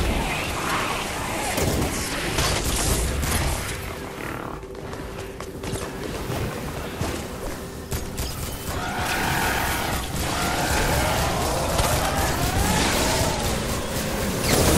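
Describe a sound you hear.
Energy blasts crackle and whoosh.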